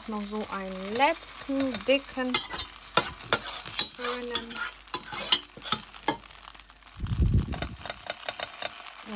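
Batter sizzles in a hot frying pan.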